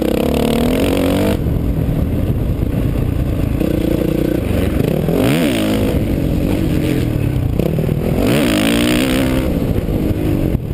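A dirt bike engine revs hard close by, rising and falling in pitch.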